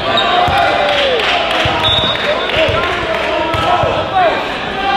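A basketball bounces on the floor with dull thumps.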